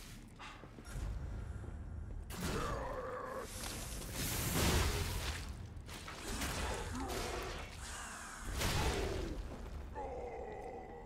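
Swords clash and slash in a loud fight.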